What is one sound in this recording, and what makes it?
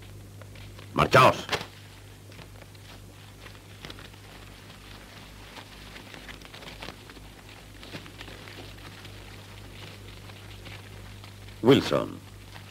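A man speaks in a low, gruff voice close by.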